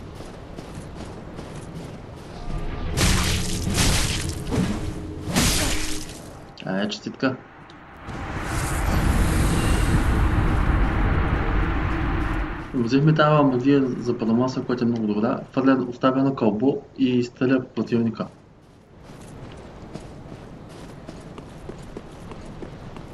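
Armoured footsteps crunch through snow.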